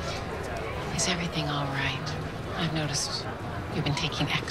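A young girl speaks softly and close by.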